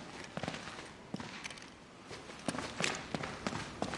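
Footsteps echo in a stone passage.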